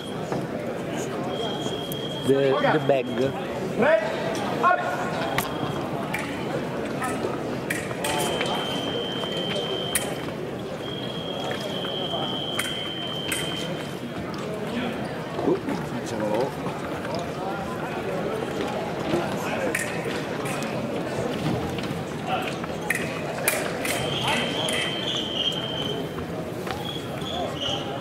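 Thin blades clink against each other.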